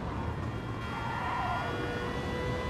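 Tyres squeal briefly through a corner.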